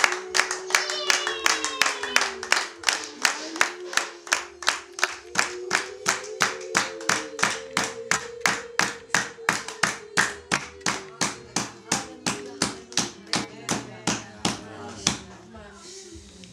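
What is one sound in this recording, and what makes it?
A group of people clap their hands in a fast, steady rhythm.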